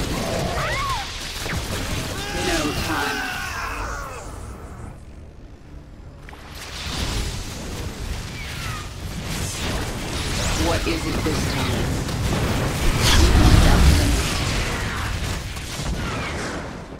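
Blasts and impacts thud during a battle.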